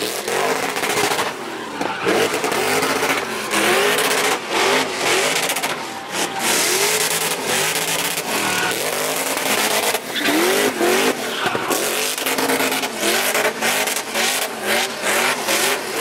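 Tyres squeal and hiss as a car slides sideways.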